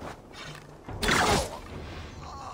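A heavy blow lands with a sudden thud.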